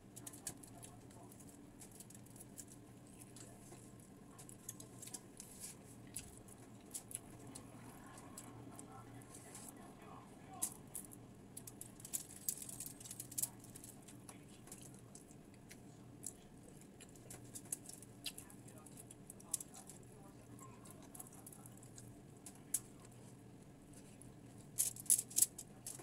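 Crinkly foil rustles as food is picked up by hand.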